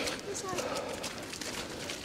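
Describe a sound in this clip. Footsteps crunch on a gravel path outdoors.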